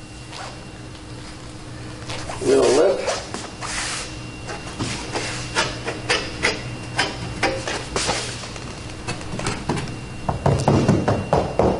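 A hand taps and rubs on a car's metal body.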